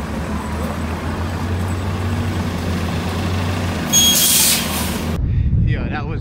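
Traffic hums steadily along a city street.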